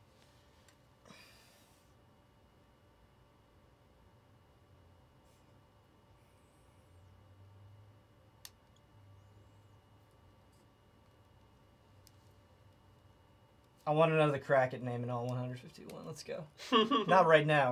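Small plastic parts click and rustle as they are handled.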